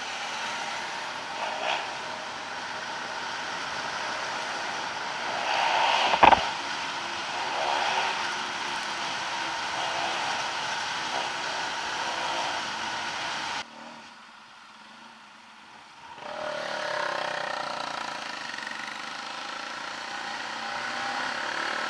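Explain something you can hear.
A motorcycle engine hums steadily while riding, dropping to a quiet idle for a short stop.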